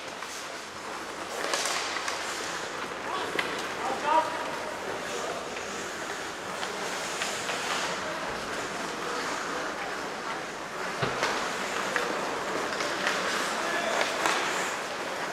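Skate blades scrape and hiss across ice in a large echoing arena.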